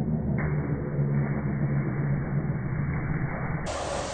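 A man splashes into a pool of water.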